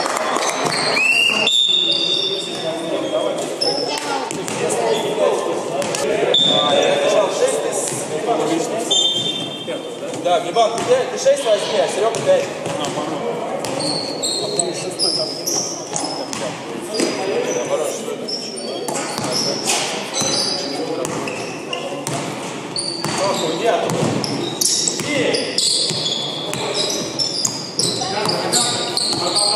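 Sneakers squeak on a hard gym floor.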